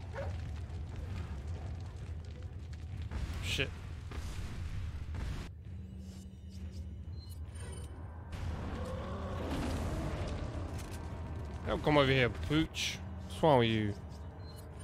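A giant creature roars loudly.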